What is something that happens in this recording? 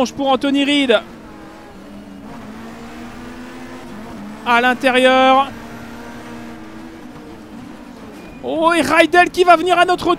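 A racing car engine drones steadily, roaring loudly in short bursts as it revs.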